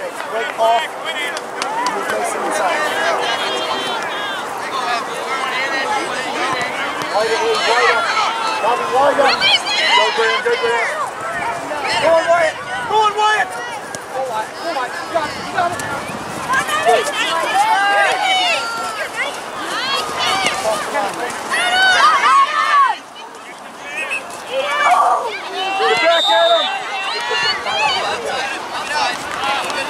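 Young players and spectators shout and call out across an open field outdoors.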